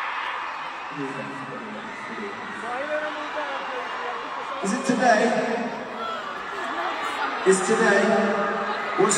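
A man speaks through loudspeakers, calmly and with pauses.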